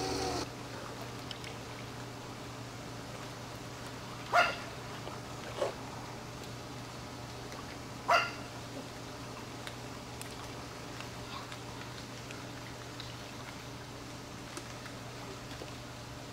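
Water laps and sloshes as people wade through an outdoor pool.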